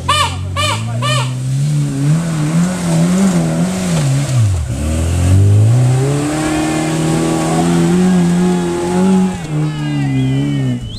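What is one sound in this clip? An off-road vehicle's engine revs loudly, its pitch rising and falling as it climbs.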